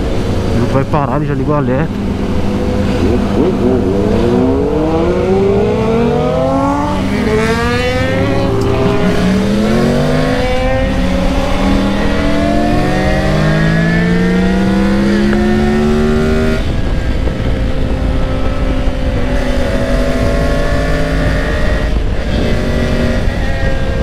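A motorcycle engine roars and revs up through the gears as it speeds along.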